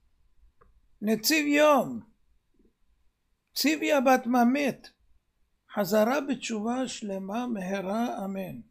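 An elderly man chants slowly and melodiously, close to a microphone.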